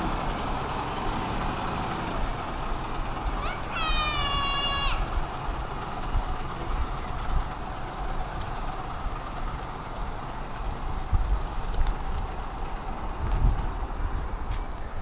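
A bus drives away and its engine slowly fades into the distance.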